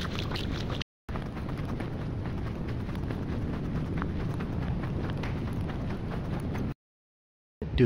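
Shoes step softly on artificial grass.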